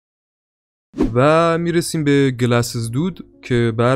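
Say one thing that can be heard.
A young man speaks with feeling, close by.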